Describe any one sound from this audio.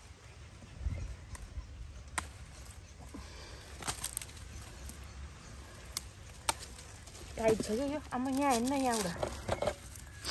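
Leafy plant stems rustle as a person picks fruit by hand.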